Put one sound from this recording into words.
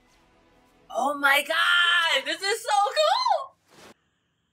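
A young woman exclaims loudly.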